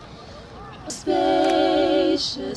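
A woman sings into a microphone with a wavering, sustained voice.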